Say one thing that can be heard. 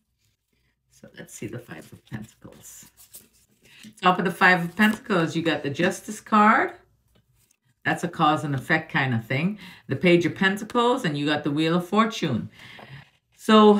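A middle-aged woman talks with animation, close up.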